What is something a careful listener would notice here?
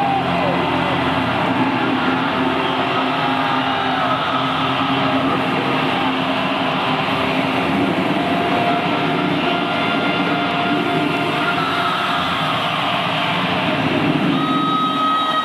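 An electric guitar plays loudly through amplifiers in a large echoing arena.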